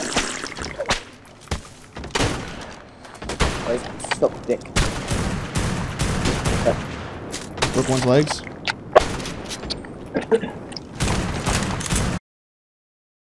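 A rifle fires in sharp, rapid shots.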